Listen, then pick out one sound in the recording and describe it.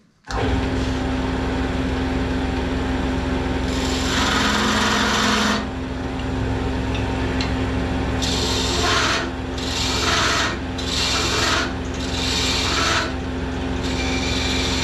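A wood lathe hums and whirs steadily.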